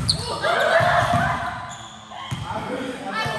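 A volleyball is struck with a loud smack.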